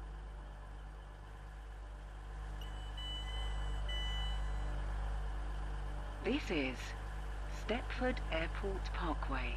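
A train's electric motor hums steadily at a standstill.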